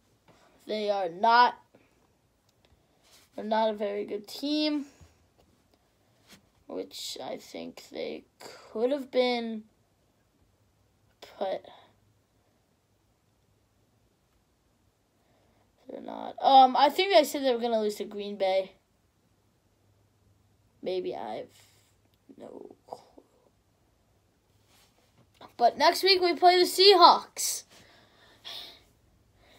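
A boy talks close to a microphone in short bursts with pauses.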